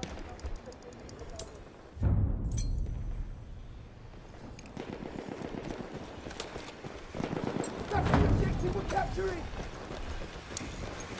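Gunfire cracks and pops in the distance.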